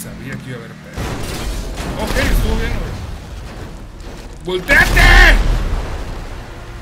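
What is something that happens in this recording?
A car crashes and tumbles with loud metallic bangs.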